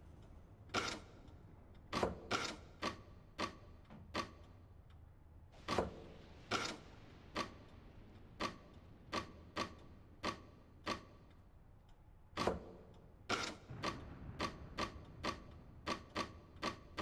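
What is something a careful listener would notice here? A wooden block slides and clicks into place again and again.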